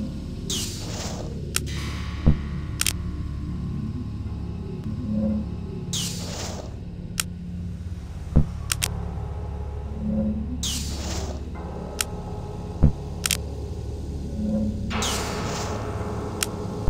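A soft whoosh sweeps by.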